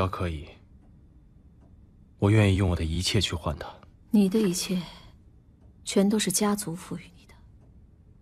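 A man speaks quietly and seriously.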